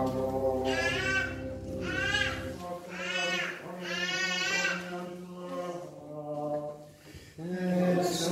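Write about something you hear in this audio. Women sing a slow, drawn-out hymn in a large echoing hall.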